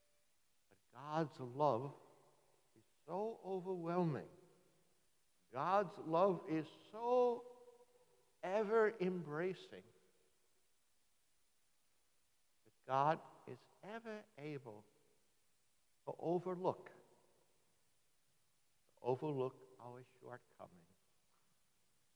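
An elderly man speaks calmly in phrases with long pauses.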